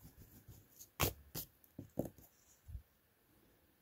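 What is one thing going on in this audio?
Hands bump and tap against a sketchbook.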